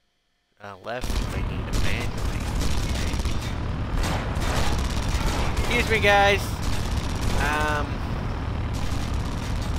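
A heavy armoured vehicle's engine rumbles steadily.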